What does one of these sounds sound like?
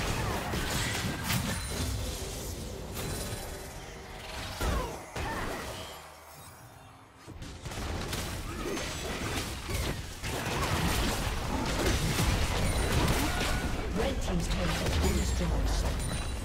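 Video game spell effects whoosh, zap and crackle in a busy fight.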